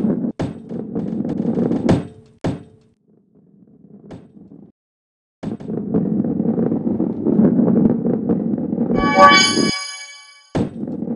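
A ball rolls and rumbles along a wooden track.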